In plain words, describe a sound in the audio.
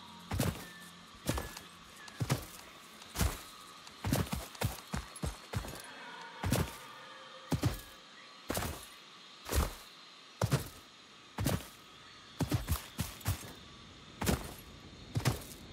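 Footsteps tread steadily through grass and soft ground.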